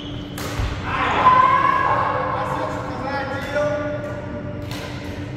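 A man talks casually at a distance in an echoing hall.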